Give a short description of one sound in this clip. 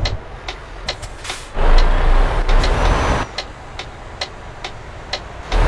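A turn signal ticks at an even pace.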